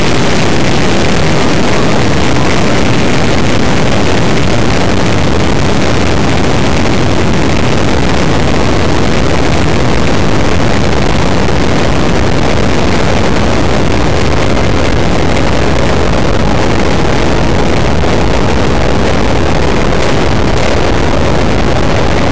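Loud wind roars steadily past a fast car.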